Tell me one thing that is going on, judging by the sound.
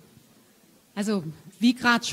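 A young woman speaks loudly into a close microphone.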